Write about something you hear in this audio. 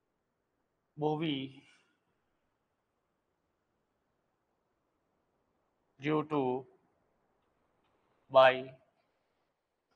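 A man speaks in short phrases, close to a microphone, with pauses between them.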